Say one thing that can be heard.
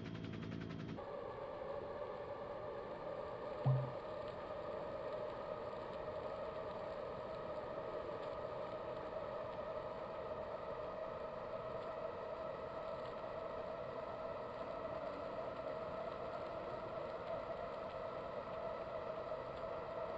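An indoor bike trainer whirs steadily.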